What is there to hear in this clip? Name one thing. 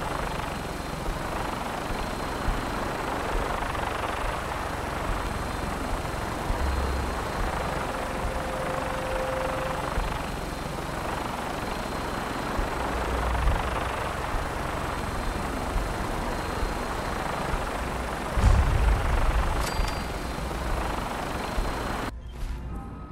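Aircraft rotors roar and thrum steadily overhead.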